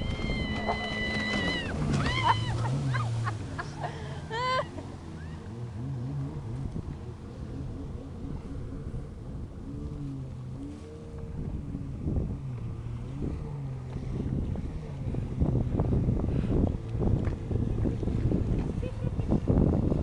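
Waves slap and splash against a boat.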